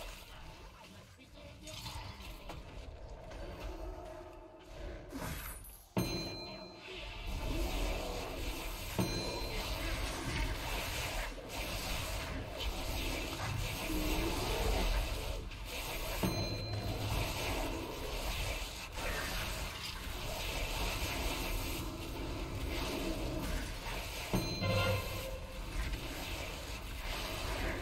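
Magic spells crackle and whoosh in a noisy battle.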